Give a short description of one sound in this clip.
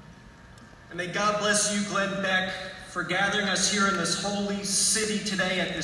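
A man speaks steadily through loudspeakers in a large echoing hall.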